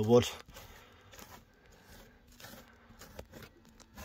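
A hand brushes against rough cloth.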